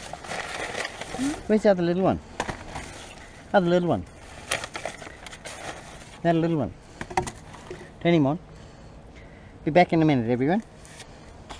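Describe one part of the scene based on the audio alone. Plastic bags rustle and crinkle as hands rummage through trash.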